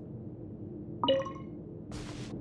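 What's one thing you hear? A short bright chime rings as an item is picked up.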